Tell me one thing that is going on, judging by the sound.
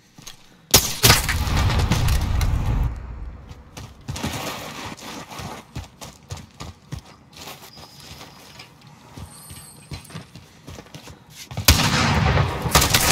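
A gunshot cracks loudly and booms away.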